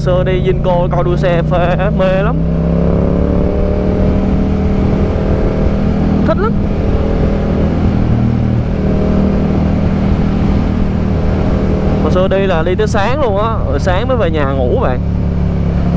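A motorcycle engine hums steadily while riding.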